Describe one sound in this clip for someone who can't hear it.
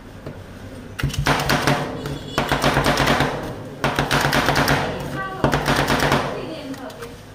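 Metal spatula blades chop rapidly against a metal plate.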